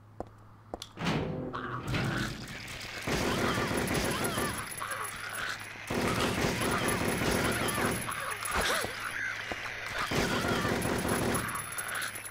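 Creatures snarl and growl loudly.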